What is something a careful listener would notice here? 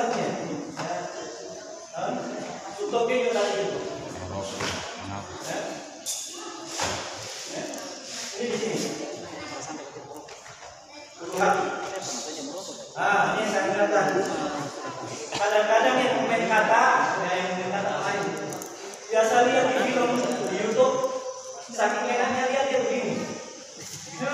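A man speaks with animation, echoing in a large hall.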